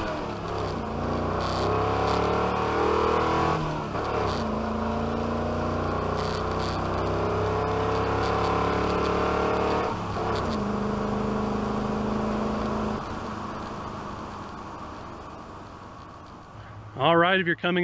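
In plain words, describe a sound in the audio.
A loud engine revs up hard from inside a moving vehicle, dropping in pitch at each gear shift.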